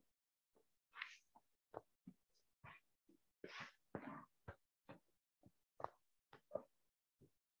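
A chalkboard eraser rubs and scrapes across a board in short strokes.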